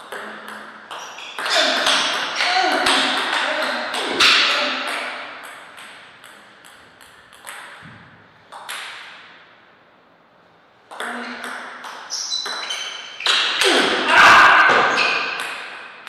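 A ping-pong ball clicks back and forth off paddles and the table in a quick rally.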